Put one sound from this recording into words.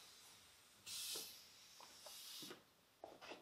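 A wiper swishes across a chalkboard.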